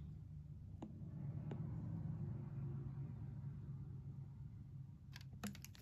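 A plastic bottle crinkles as a hand grips it.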